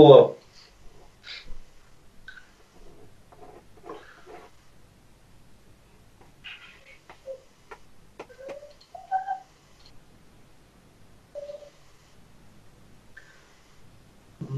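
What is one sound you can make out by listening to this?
A man speaks quietly through an online call, with long pauses.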